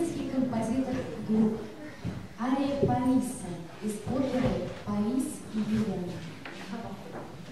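A woman announces calmly through a microphone in an echoing hall.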